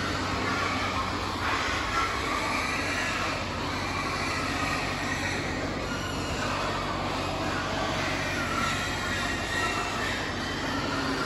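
Many pigs grunt and squeal in a large echoing hall.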